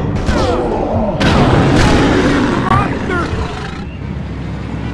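Heavy crashes and smashing metal ring out loudly.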